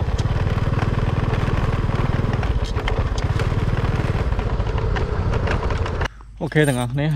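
A motorbike engine rumbles steadily while riding over bumpy ground.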